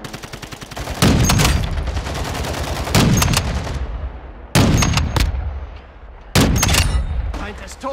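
A rifle fires loud shots that boom and echo.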